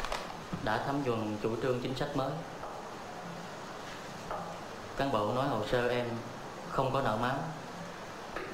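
A young man speaks calmly and evenly, close by.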